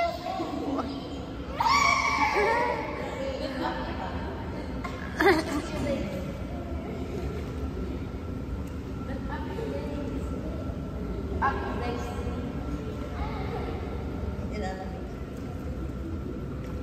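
Water splashes and laps as people move through a pool.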